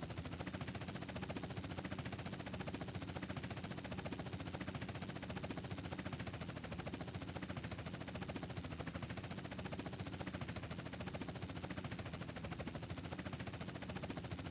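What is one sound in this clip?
Helicopter rotor blades chop rapidly and steadily.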